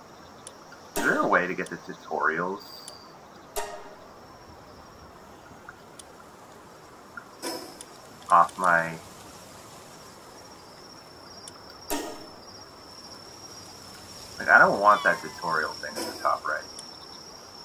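A man speaks casually into a close microphone in short bursts.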